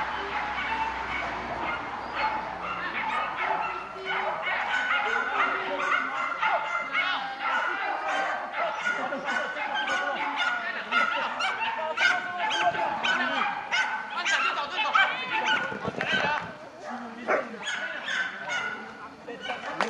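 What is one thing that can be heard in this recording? A woman calls out commands to a dog outdoors.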